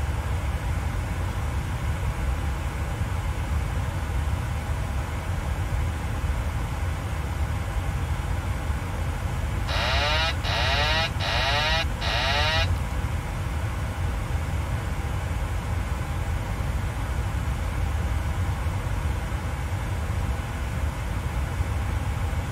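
A steady low aircraft engine hum drones throughout.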